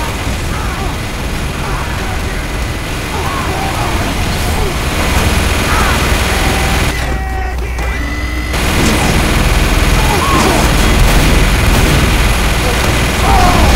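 Gunfire rattles nearby.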